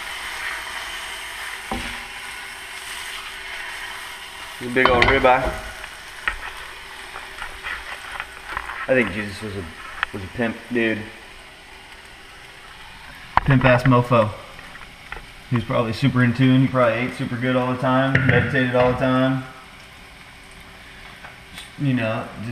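A steak sizzles in a hot pan.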